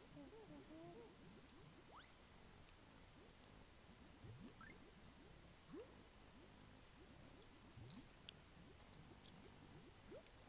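Bouncy cartoon game music plays with quick rising blips.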